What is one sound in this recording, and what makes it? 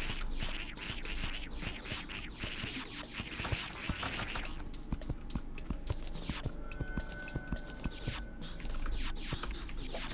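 Magic bolts whoosh out again and again in quick bursts.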